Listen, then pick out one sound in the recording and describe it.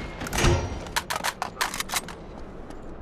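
Single gunshots crack sharply.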